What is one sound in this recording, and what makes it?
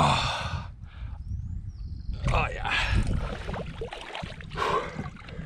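Water splashes and sloshes around a person wading.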